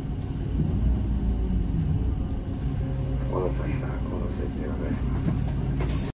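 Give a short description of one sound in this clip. A vehicle engine hums low and steady from inside the cabin.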